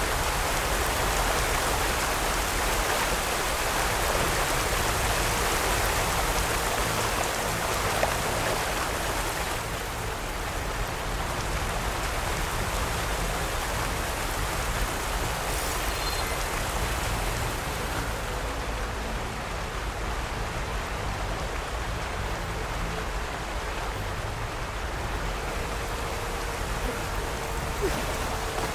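Water rushes and roars steadily nearby.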